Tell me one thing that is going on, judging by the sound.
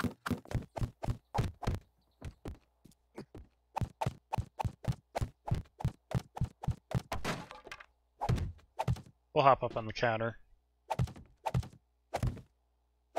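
Wooden blocks knock into place in quick succession.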